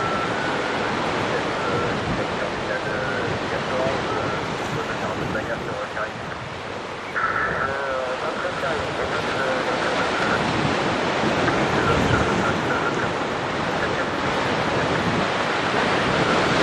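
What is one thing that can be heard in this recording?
A jet airliner's engines roar as it accelerates down a runway toward the listener.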